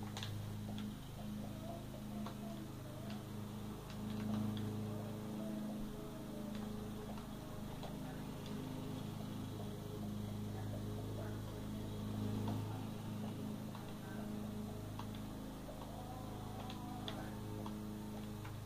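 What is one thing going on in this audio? Game controller buttons click softly.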